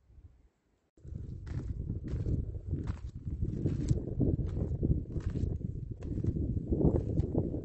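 Footsteps crunch on loose gravel and rock.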